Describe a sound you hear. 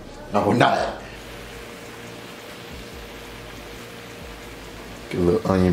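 Shrimp sizzle in a hot pan.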